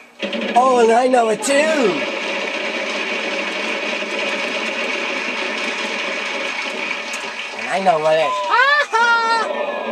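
A game wheel spins with rapid clicking that slows down.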